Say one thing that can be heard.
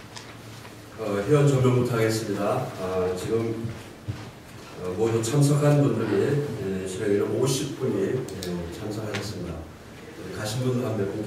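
A middle-aged man speaks calmly into a microphone, heard through loudspeakers in an echoing hall.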